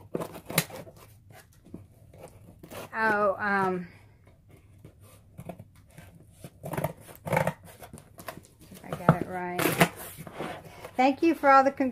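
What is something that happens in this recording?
Packing tape rips off a cardboard box.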